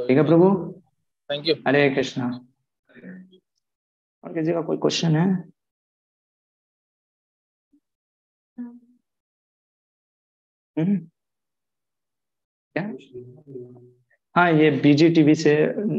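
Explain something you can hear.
A man speaks calmly in bursts through an online call, pausing often.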